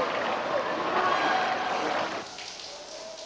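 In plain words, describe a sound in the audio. Water sloshes and laps in a pool.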